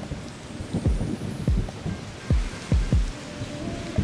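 Raindrops patter into a shallow puddle.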